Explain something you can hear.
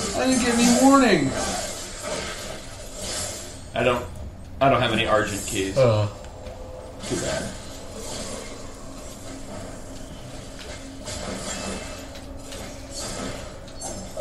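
A blade swishes and clangs in a fight.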